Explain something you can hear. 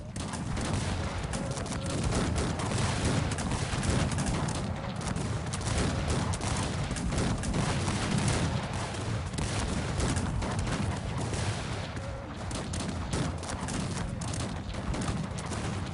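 Muskets crackle in rapid, rolling volleys.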